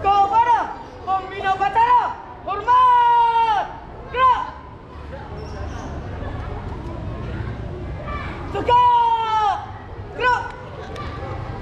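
A young man shouts drawn-out commands loudly outdoors.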